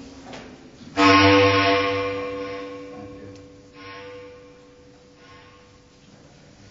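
A bass clarinet plays a loud long note that slowly fades.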